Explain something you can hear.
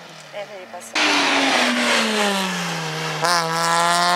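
A second car's engine revs hard as it races past.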